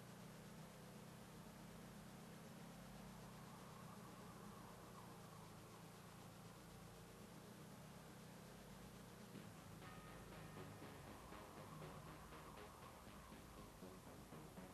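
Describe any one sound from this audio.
A car engine hums steadily as it drives slowly.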